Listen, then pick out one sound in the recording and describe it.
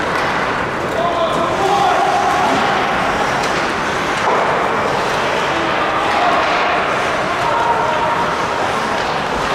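Players shout across a large echoing rink.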